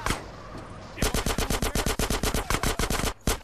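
A pistol fires a rapid string of loud shots.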